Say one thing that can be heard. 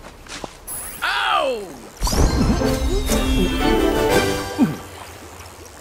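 A bright chime plays a short rising jingle for a level up.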